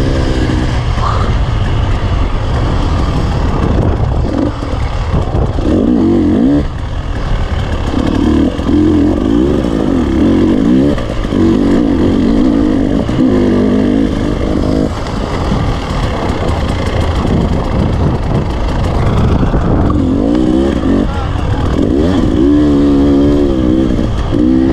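A dirt bike engine revs loudly up close, rising and falling.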